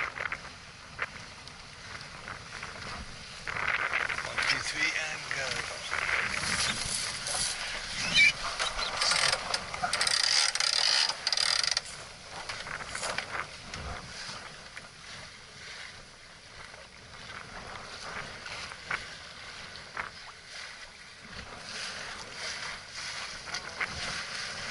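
Wind blows over the deck.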